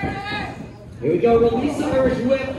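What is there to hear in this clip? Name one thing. A body slams heavily onto a wrestling ring mat with a loud thud.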